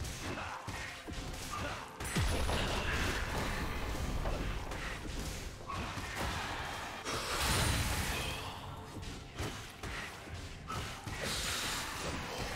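Video game spells crackle and boom during a fight.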